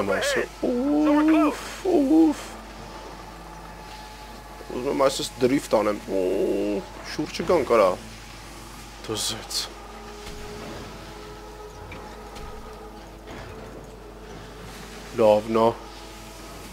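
A sled's runners hiss steadily over snow.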